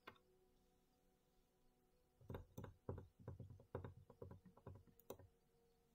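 Cards are laid down on a table with soft taps.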